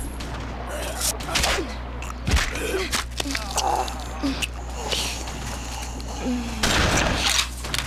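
Blades swish and slash in a close fight.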